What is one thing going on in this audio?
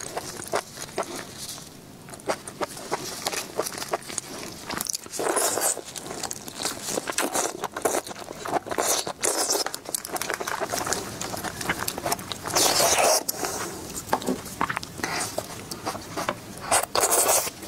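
A young woman chews and slurps food loudly close to a microphone.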